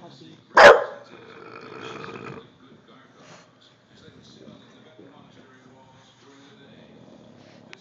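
A television plays quietly in the background.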